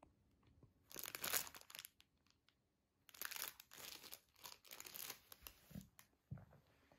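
A plastic packet crinkles as a hand handles it.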